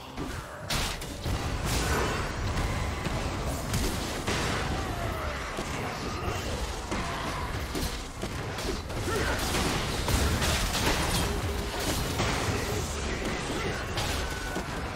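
Game spells whoosh and crackle in a fast fight.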